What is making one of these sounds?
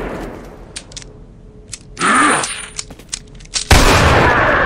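A gun is reloaded with quick metallic clicks.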